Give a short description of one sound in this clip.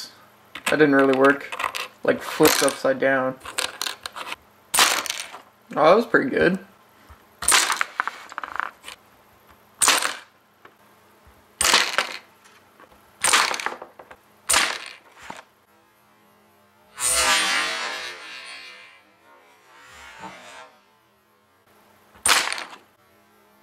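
Small plastic parts click and clack.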